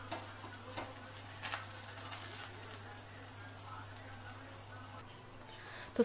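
A gas flame hisses softly.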